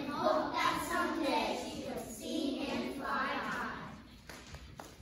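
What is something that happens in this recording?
A young girl speaks loudly on stage in a large echoing hall.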